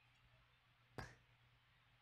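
A game stone clicks onto a wooden board.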